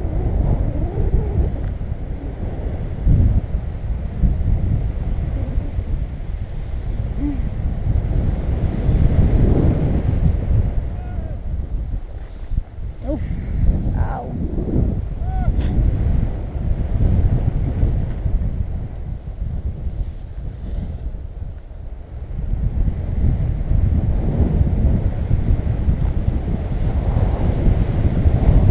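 Wind rushes and buffets against the microphone during a paraglider flight.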